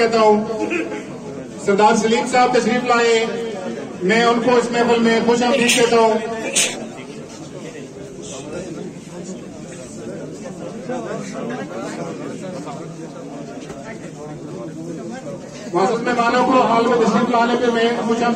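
A crowd of men chatters all around in an echoing room.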